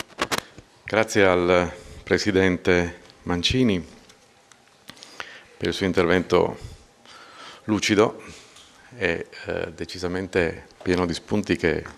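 A middle-aged man speaks calmly into a microphone over a loudspeaker.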